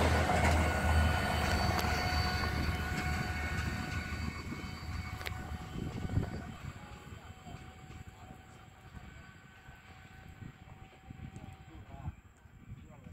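A rail maintenance vehicle rumbles along the tracks, moving away and fading.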